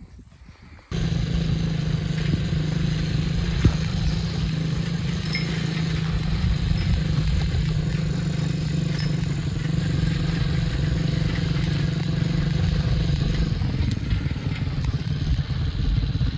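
A small quad bike engine hums steadily.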